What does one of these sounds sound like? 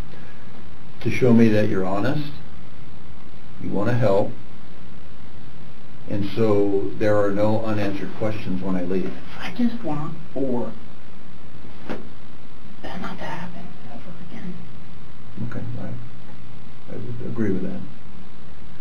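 A young man speaks quietly and haltingly.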